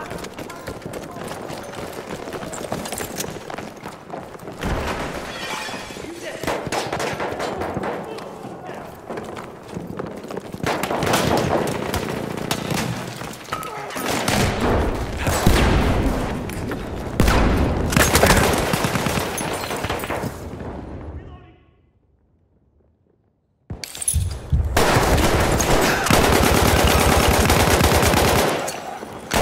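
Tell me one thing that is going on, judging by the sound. Gunfire rattles in quick bursts and echoes.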